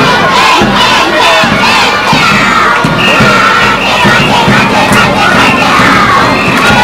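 A crowd of children cheers and shouts loudly nearby, outdoors.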